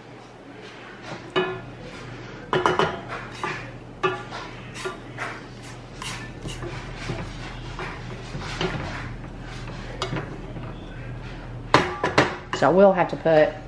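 A wooden spoon scrapes and stirs oats in a metal pot.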